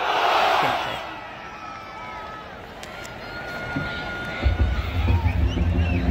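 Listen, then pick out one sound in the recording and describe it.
A marching band's brass plays long held notes.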